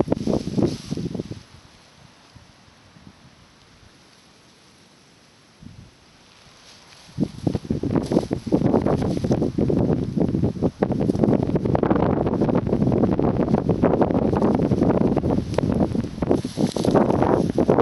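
Dry grass rustles and crackles close by.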